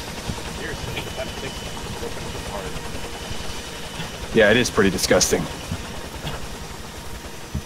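A helicopter's rotor thuds steadily overhead.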